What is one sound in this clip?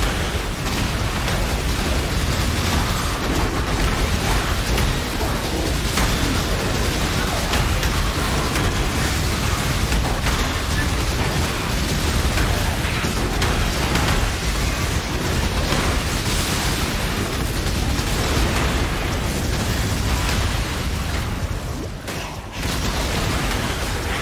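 Spells crackle and burst in rapid, constant bursts.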